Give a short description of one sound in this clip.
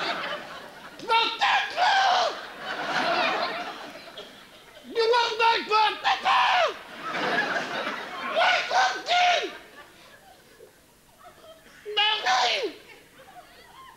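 A man makes shrill warbling bird calls through a microphone, in short bursts.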